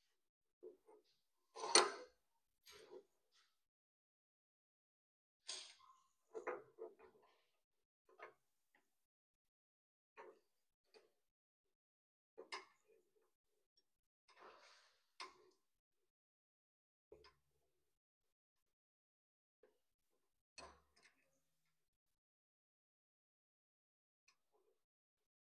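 Metal parts click and clack as hands fit them together.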